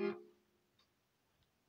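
An accordion sounds a short chord that quickly fades.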